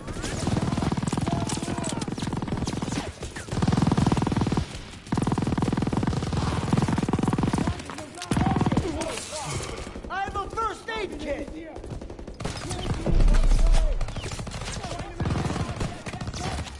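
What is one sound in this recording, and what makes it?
A rapid gun fires in loud bursts.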